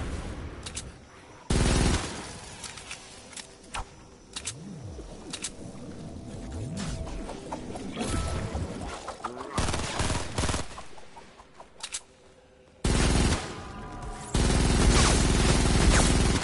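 A gun fires in bursts of shots.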